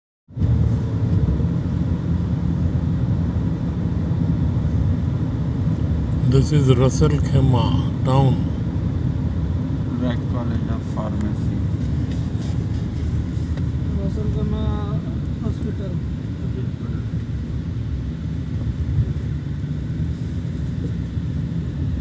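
A vehicle's engine rumbles steadily from inside as it drives along a road.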